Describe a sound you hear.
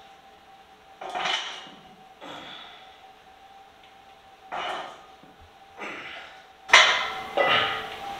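A man breathes out hard with each lift.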